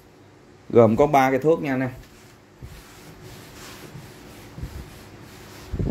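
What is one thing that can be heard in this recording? A gloved hand brushes across carpet.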